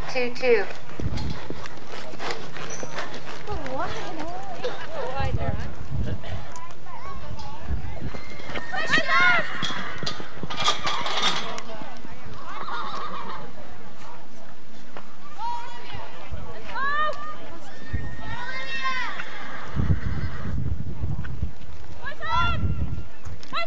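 Horse hooves thud rapidly on soft dirt.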